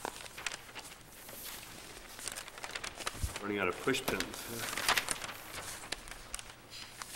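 Paper rustles and crinkles against a board.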